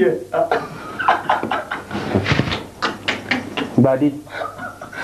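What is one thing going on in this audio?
Several people laugh loudly.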